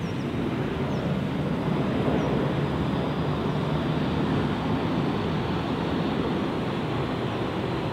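A jet airliner's engines roar loudly as it races down a runway.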